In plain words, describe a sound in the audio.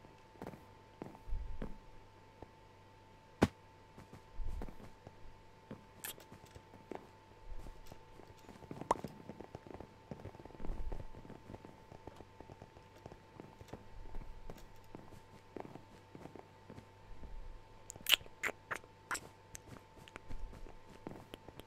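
Footsteps tap on hard blocks as a game character walks.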